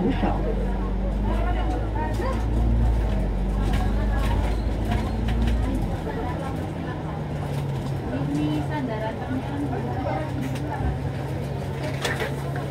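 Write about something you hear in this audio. A bus engine rumbles steadily from close by.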